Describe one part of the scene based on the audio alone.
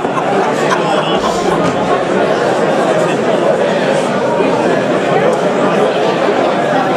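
A crowd of men and women chatter loudly in a large echoing hall.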